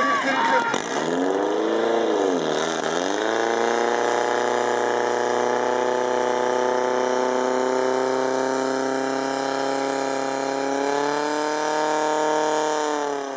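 A portable fire pump engine revs up and runs under load.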